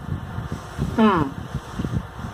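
A young woman lets out a short, falling exclamation close to a microphone.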